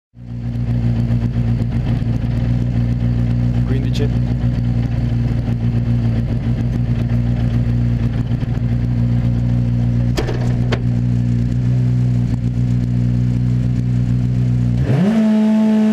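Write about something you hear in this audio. A rally car engine idles with a deep, uneven rumble.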